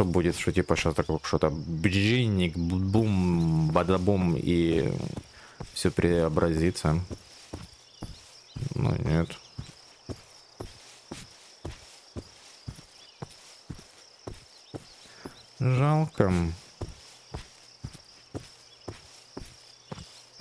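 Footsteps swish through grass at a steady walking pace.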